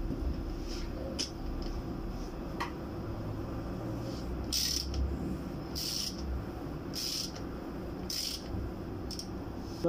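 A metal wrench clicks and ratchets against a bolt.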